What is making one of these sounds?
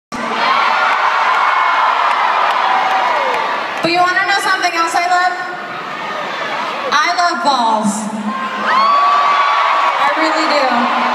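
A crowd cheers and screams loudly in a large hall.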